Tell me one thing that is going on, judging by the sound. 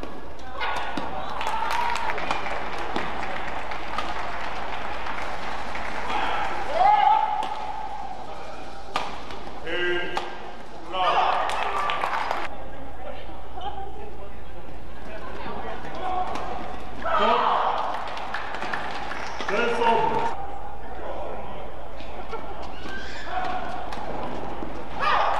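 Rackets strike a shuttlecock with sharp pops.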